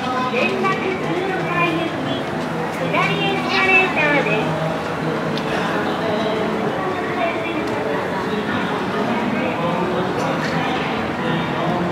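A crowd of people talks in a busy echoing hall.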